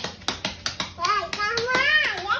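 A young girl squeals with excitement.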